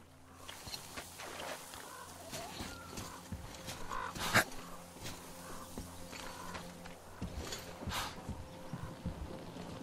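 Footsteps crunch over snow and boards.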